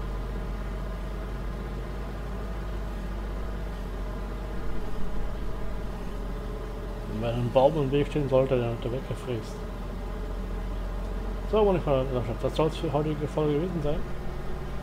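A truck engine hums steadily.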